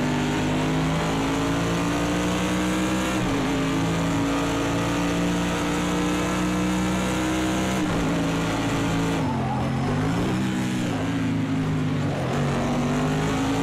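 A racing car engine roars steadily at high revs, dipping as the car slows for corners and climbing again.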